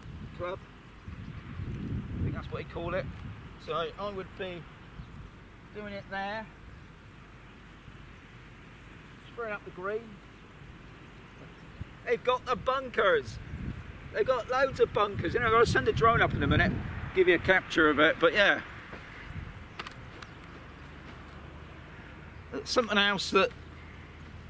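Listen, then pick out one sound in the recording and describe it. An older man talks with animation, close by, outdoors in light wind.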